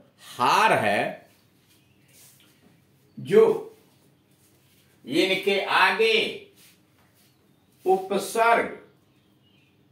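A middle-aged man speaks clearly in short bursts, as if teaching, close by.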